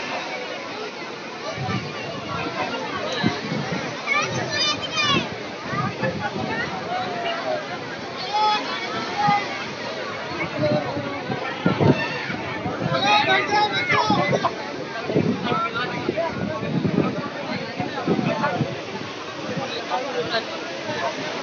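A crowd of men and women talk and call out all around.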